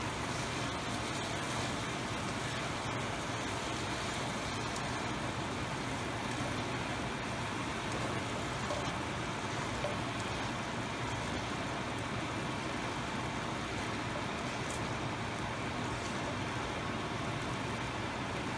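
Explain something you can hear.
A metal spatula scrapes and stirs food in a pan.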